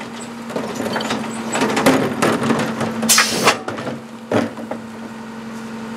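A garbage truck's packer blade sweeps and crunches trash into the body.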